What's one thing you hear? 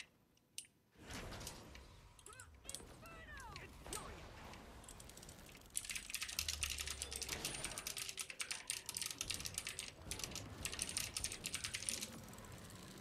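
Magic spells and weapon blows crackle and clash in a fast fight.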